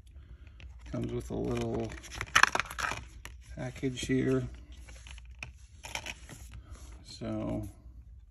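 A plastic disc case rattles and clicks as it is handled.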